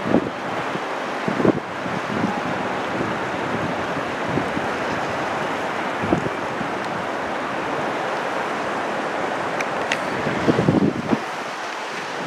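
A river rushes steadily nearby.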